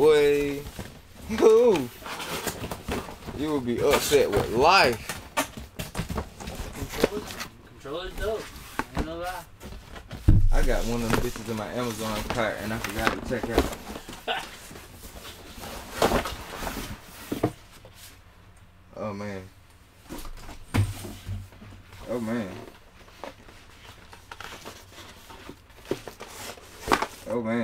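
A second man talks calmly nearby.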